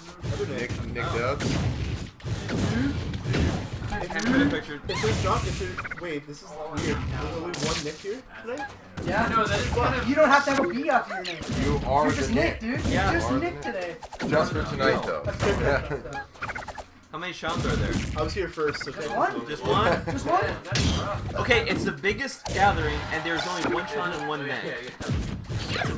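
A young man commentates with animation through a microphone.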